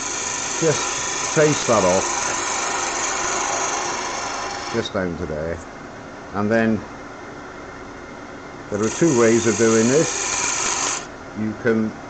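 A wood lathe whirs as it spins.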